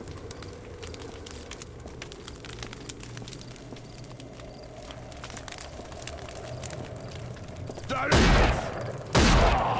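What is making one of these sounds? Footsteps crunch over debris.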